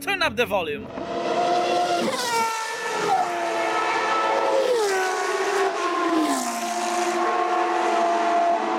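A racing car engine screams at high speed, dropping in pitch with each gear change.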